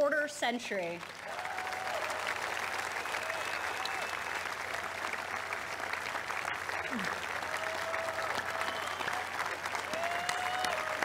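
A large crowd applauds and cheers in a big open space.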